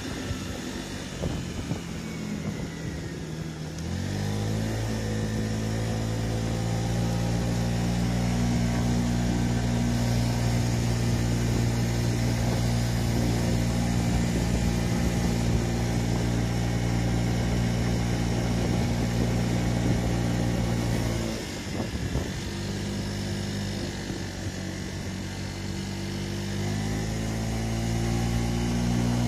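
A scooter engine hums steadily, rising in pitch as it speeds up and dropping as it slows.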